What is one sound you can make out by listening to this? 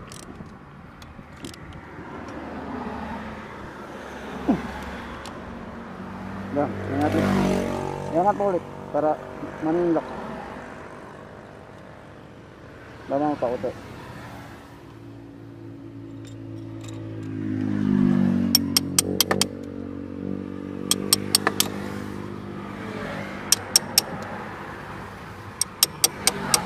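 Metal tools click and clink sharply.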